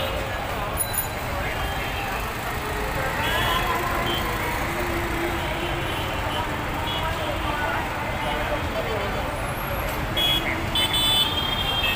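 Crowd chatter from many people fills the street.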